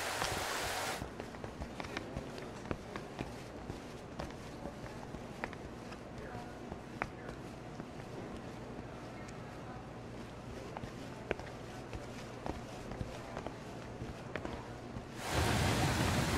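Footsteps sound indoors.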